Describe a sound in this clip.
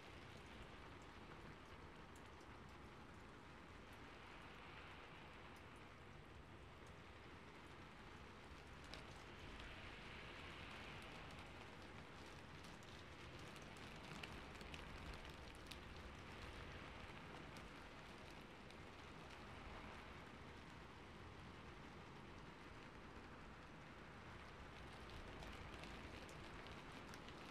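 Hands swish and brush softly close to a microphone.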